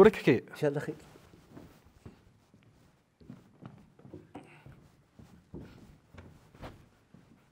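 Footsteps shuffle softly on a stage.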